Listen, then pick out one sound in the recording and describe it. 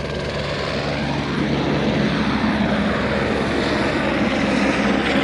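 Wind blows hard outdoors, rumbling steadily.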